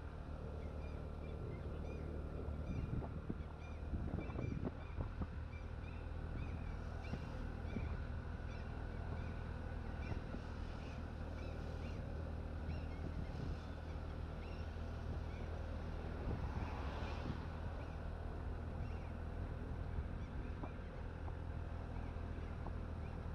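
Wind rumbles steadily past outdoors.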